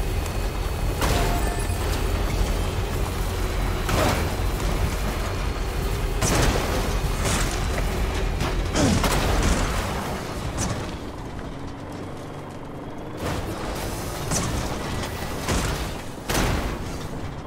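Tyres thump and bang over rocks.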